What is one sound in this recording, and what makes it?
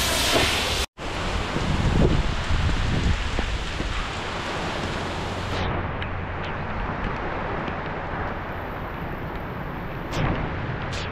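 Gusty wind blows outdoors.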